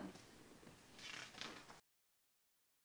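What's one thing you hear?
Book pages turn with a soft rustle.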